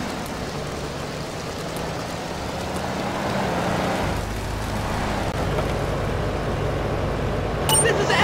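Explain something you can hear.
Rain falls outdoors.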